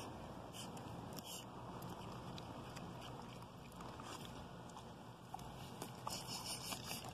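A dog sniffs closely at grass.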